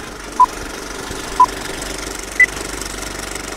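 Short electronic beeps mark a countdown, the last one higher.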